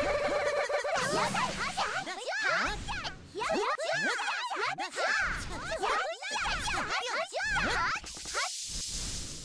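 Cartoonish whooshes and item effects ring out.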